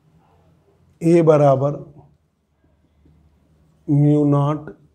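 A man speaks calmly and loudly nearby.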